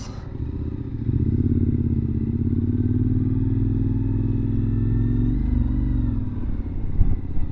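A motorcycle engine hums steadily close by, then its pitch drops as it eases off.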